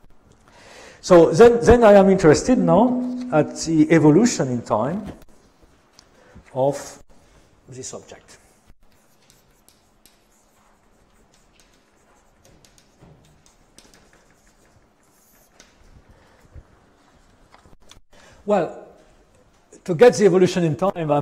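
An elderly man lectures calmly.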